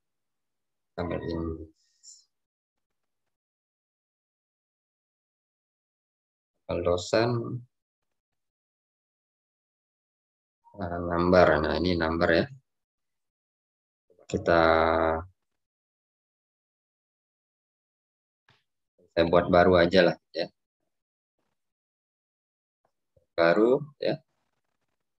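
A young man speaks in short bursts over an online call.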